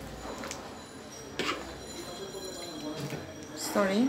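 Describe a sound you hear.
Liquid soup sloshes as a spoon stirs it.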